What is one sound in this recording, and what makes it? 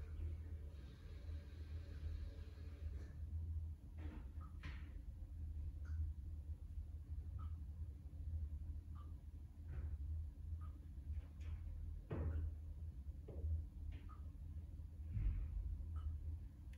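Water sloshes and splashes inside a washing machine drum.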